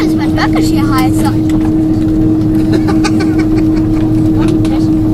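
Tyres rumble over the runway as the plane rolls.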